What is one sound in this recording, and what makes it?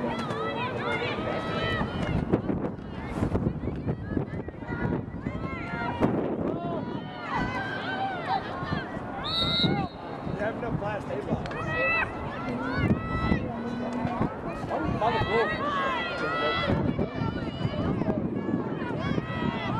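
Young women shout to each other across an open field outdoors.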